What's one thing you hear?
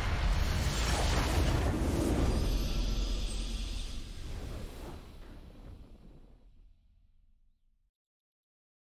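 A huge magical explosion booms with a deep rumble, then slowly fades away.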